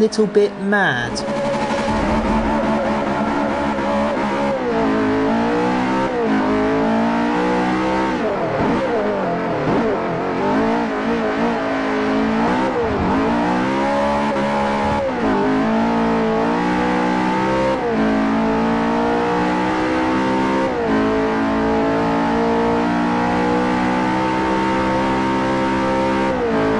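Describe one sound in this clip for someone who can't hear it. A sports car engine roars loudly, revving up and dropping as it shifts gears.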